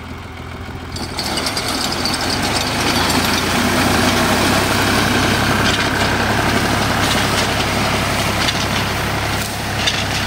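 A reaper's blades clatter as they cut through dry stalks.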